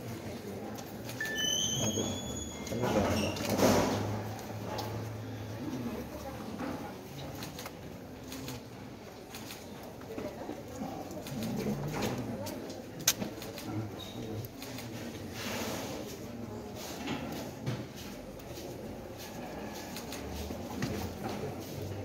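Several men talk in low voices nearby.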